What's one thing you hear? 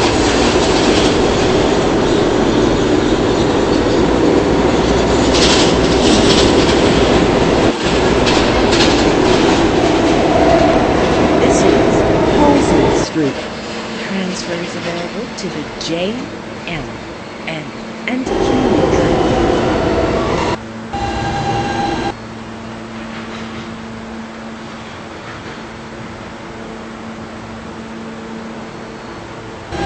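A subway train roars and rumbles along the tracks, loud at first and then quieter.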